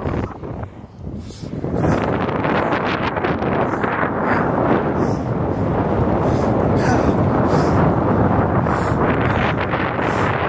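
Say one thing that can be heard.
A young man talks breathlessly while running, close up.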